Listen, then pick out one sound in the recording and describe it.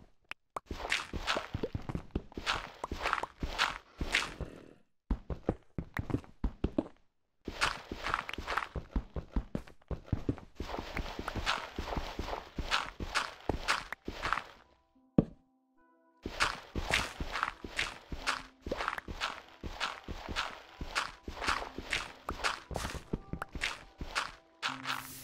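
Blocks of stone and gravel break and crumble.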